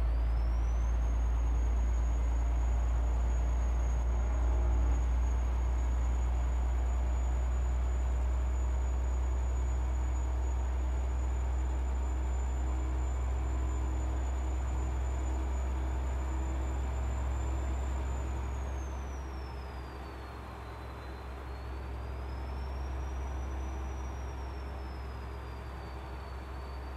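A heavy truck engine drones steadily while driving, easing off slightly near the end.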